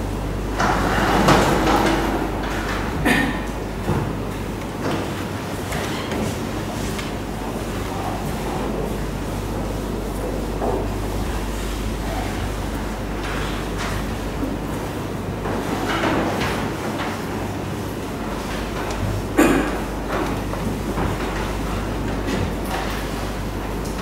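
Chalk taps and scratches on a chalkboard.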